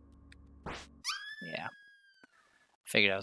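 A game sound effect chimes with falling tones as the character dies.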